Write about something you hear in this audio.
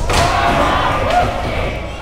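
A skateboard clatters on a hard floor.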